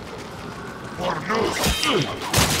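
A blade swishes and strikes with a loud metallic clash.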